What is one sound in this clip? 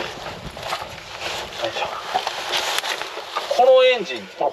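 Clothing rustles as a man climbs into a small car.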